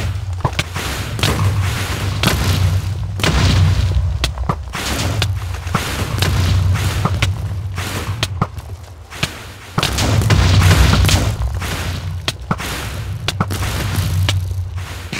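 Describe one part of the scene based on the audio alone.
A pickaxe strikes and breaks stone blocks again and again.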